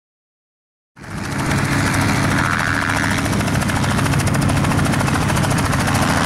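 A helicopter flies low overhead with a loud, steady roar of its engine and rotor.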